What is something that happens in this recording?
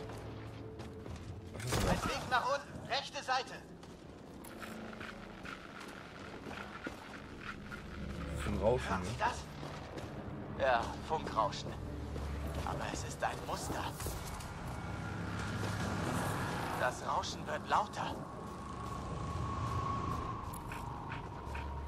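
Footsteps crunch on rough ground.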